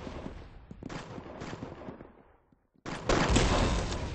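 A rifle fires a single shot.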